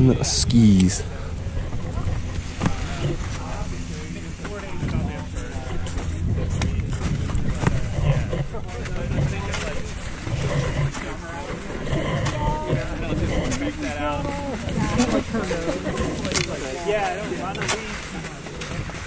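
Skiers talk casually nearby.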